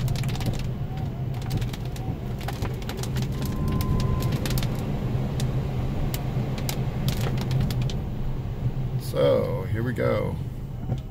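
A car hums steadily as tyres roll over a wet road, heard from inside.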